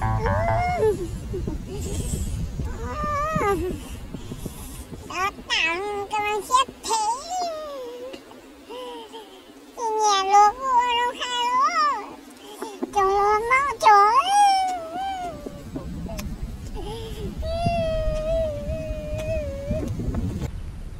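A woman cries and wails loudly.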